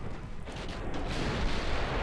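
A shell explodes against a ship with a loud boom.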